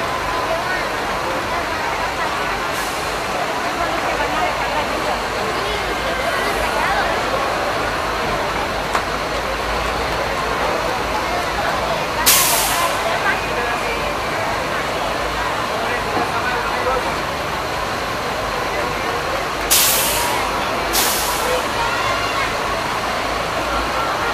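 Heavy military trucks rumble past slowly.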